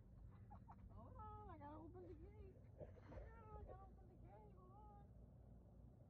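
A small dog whines in short, wavering cries.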